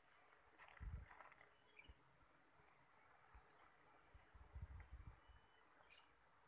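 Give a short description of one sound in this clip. A small animal snuffles and roots about in grass.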